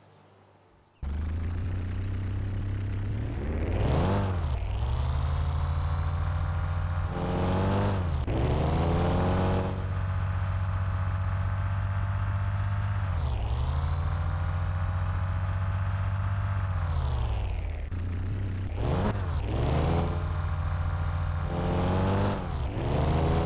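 A van engine hums steadily, revving up and dropping back again and again.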